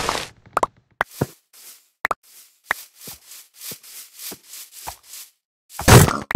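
Footsteps pad on grass.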